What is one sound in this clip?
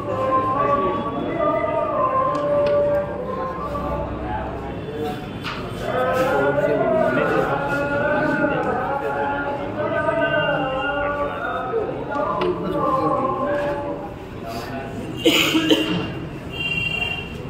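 Several men talk nearby with animation.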